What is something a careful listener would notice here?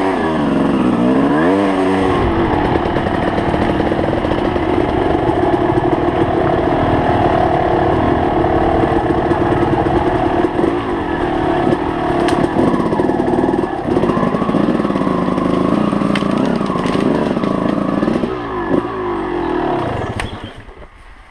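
An enduro motorcycle engine revs as the bike rides along a dirt trail.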